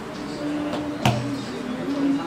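A checkers piece clicks on a plastic board.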